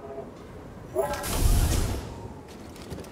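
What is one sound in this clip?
A heavy door slides open with a loud whoosh.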